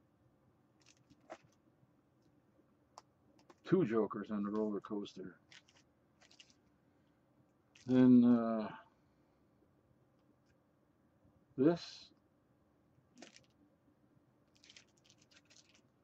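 Paper comic books rustle and slide as they are handled.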